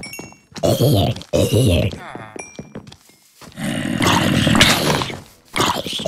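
A sword strikes with quick, sharp hits.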